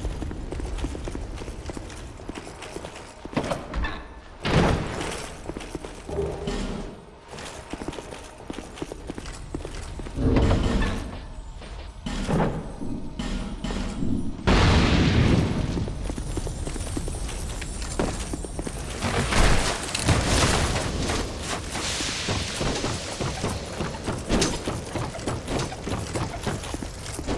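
Heavy armoured footsteps thud and clank on stone and wooden planks.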